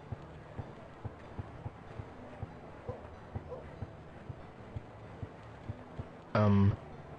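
Footsteps fall on pavement.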